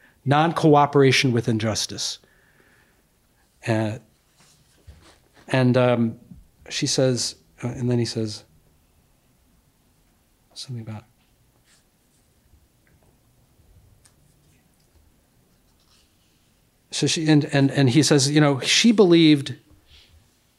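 A middle-aged man reads aloud into a microphone, with pauses between phrases.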